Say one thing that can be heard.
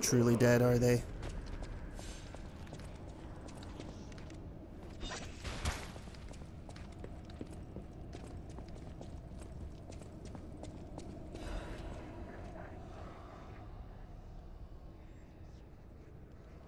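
Footsteps thud on the floor.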